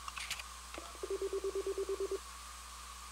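An electronic device beeps rapidly.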